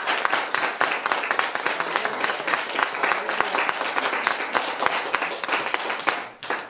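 A crowd of children and adults claps along in a lively, steady rhythm, in a room with some echo.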